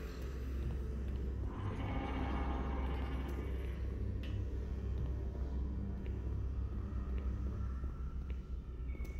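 A deep, steady mechanical drone hums throughout.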